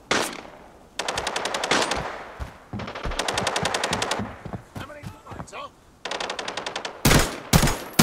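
An automatic rifle fires rapid bursts of sharp, cracking shots.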